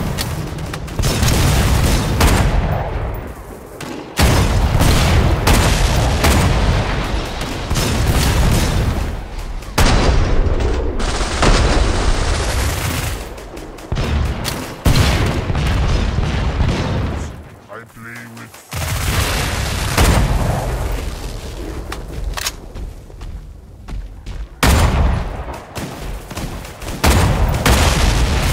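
Rifle shots boom with loud cracks, again and again.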